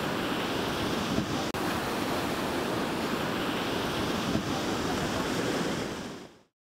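Waves break and wash up onto a sandy shore.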